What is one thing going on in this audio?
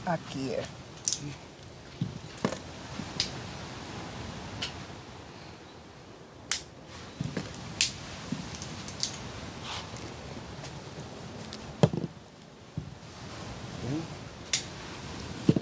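Fruit pods crack and snap as hands peel them open.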